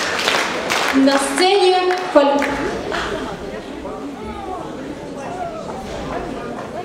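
A boy speaks into a microphone, heard through loudspeakers.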